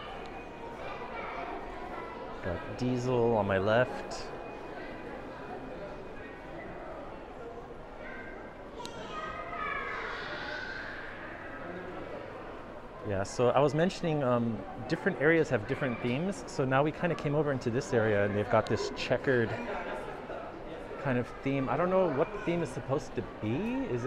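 Many people chatter and murmur softly in a large echoing hall.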